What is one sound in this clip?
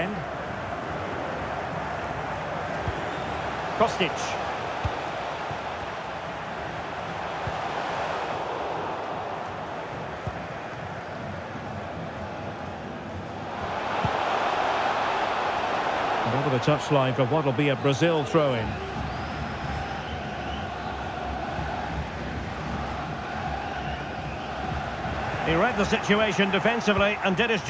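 A large stadium crowd roars and chants steadily, swelling louder partway through.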